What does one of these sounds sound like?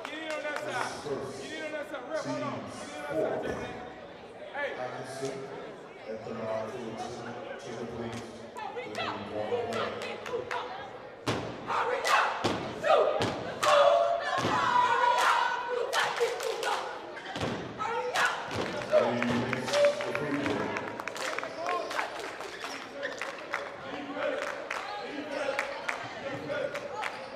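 A basketball bounces on a hard wooden floor, echoing in a large hall.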